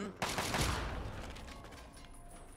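A gunshot bangs and echoes away.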